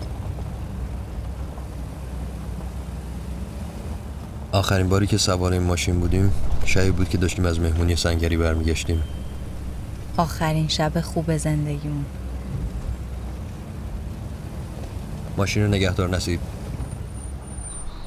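A car engine hums steadily inside the car.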